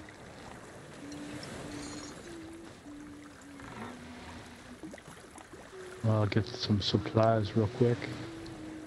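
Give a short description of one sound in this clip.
Waves wash gently against a wooden ship.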